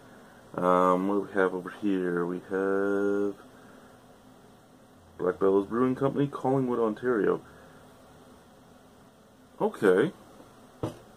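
An adult man speaks calmly and close by, in short bursts.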